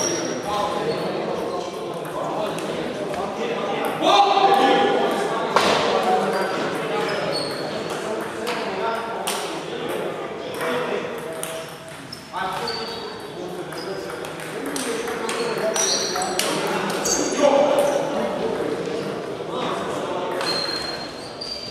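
Ping-pong balls click sharply on tables and paddles in a large echoing hall.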